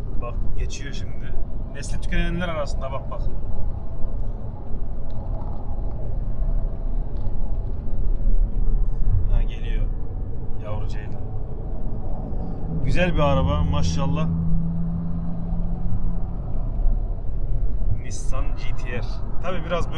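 A car engine hums steadily with road noise inside a moving car.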